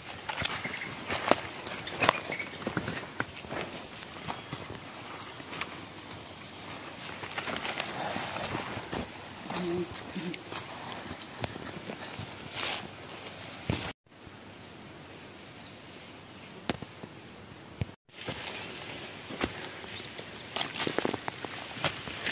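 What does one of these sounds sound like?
Leaves and fronds brush and swish against clothing.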